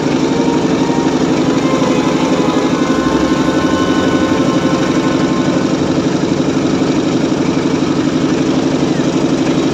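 A boat engine chugs loudly and steadily close by.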